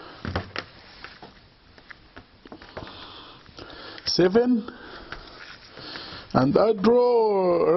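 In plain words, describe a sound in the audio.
Fabric rustles and brushes softly as hands handle it.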